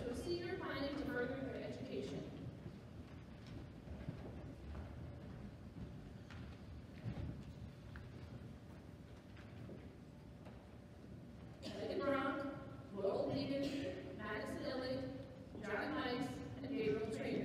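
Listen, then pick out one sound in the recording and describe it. A woman reads out names through a loudspeaker in a large echoing hall.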